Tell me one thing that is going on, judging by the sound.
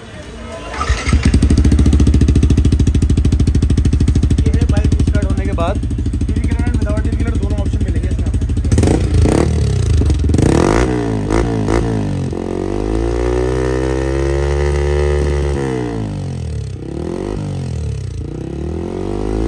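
A motorcycle engine idles with a deep, rumbling exhaust note.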